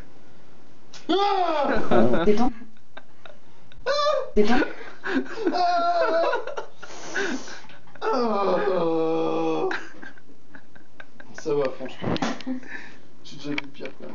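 A woman laughs loudly close by.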